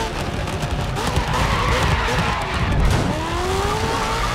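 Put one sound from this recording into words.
Tyres screech as a car slides through a corner.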